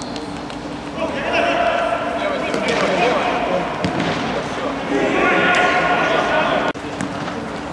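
Men shout across the court.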